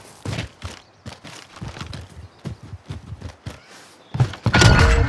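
Footsteps crunch quickly over sand.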